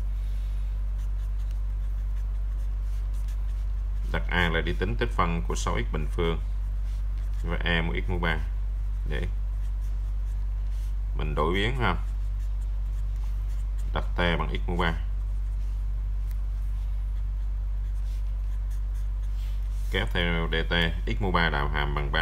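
A marker pen scratches softly across paper.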